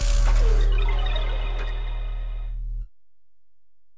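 A game's synthesized intro tone swells and fades.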